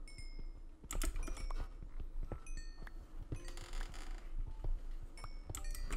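Stone blocks crack and crumble as they are mined, in quick repeated taps.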